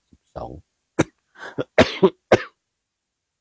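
A man coughs.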